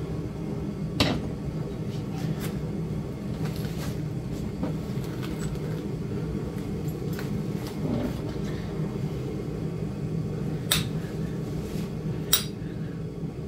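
Hard crusty shell pieces knock and clatter.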